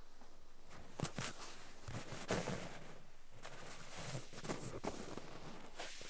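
A cotton swab brushes inside an ear with close, crackling rustles.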